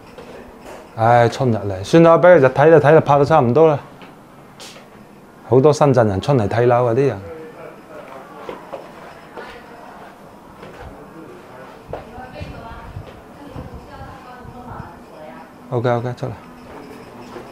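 A middle-aged man speaks with animation into a clip-on microphone.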